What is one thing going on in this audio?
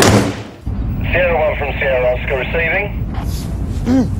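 A man talks inside a moving car.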